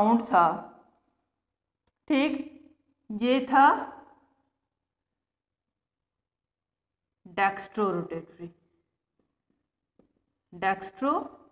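A woman speaks calmly in short phrases, close to a microphone, with pauses between them.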